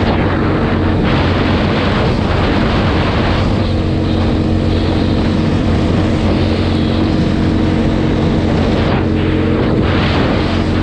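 A quad bike engine drones steadily up close.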